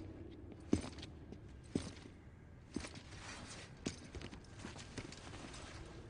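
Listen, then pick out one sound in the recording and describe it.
Gear rattles and creaks on a person's back.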